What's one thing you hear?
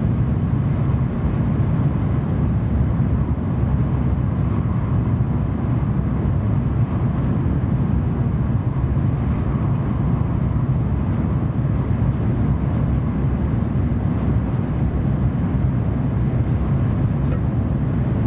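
A train rumbles steadily along the tracks, heard from inside the carriage.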